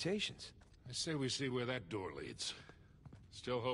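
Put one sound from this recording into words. An older man answers with animation.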